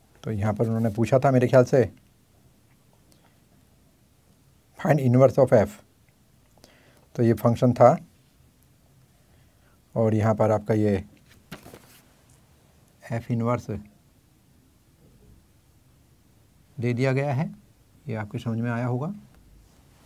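A man speaks calmly in short bursts with pauses, close by.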